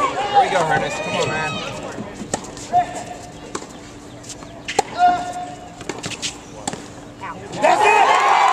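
A tennis ball is struck sharply by a racket and bounces on a hard court.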